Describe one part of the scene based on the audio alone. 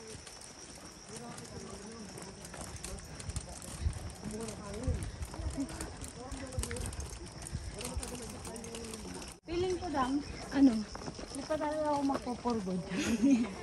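A woman talks casually nearby, outdoors.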